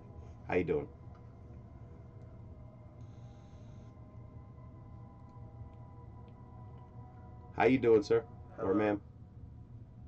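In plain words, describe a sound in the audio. A man speaks in short bursts, casually, close to a microphone.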